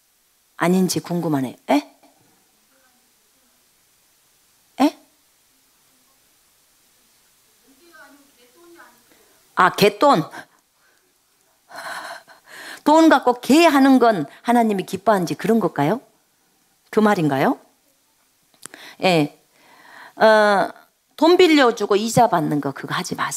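A middle-aged woman speaks calmly into a close microphone, reading aloud with pauses.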